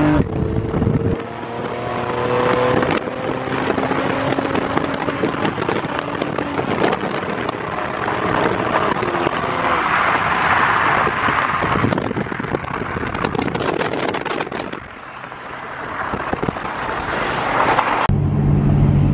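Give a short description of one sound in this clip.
Wind rushes loudly past an open car window at speed.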